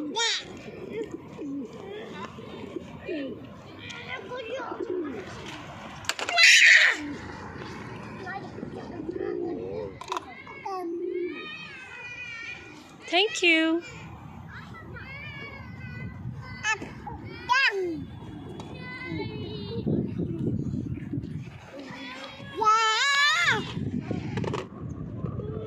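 A young child babbles and squeals close by.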